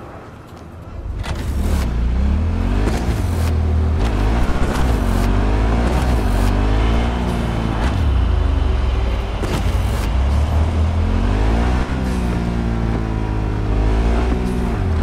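A motorbike engine roars and revs up and down as it rides.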